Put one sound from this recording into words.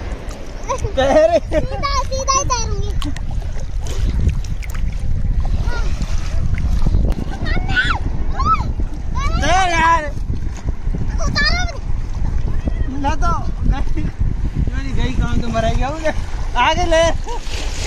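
A young girl squeals and laughs excitedly close by.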